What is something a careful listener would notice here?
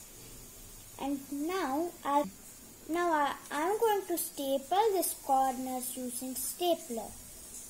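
A young boy talks calmly and close by.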